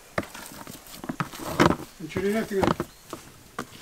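A plastic lid knocks and rattles against a plastic bowl.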